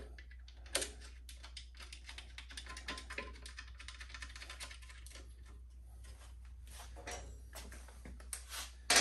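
Metal parts clink and rattle.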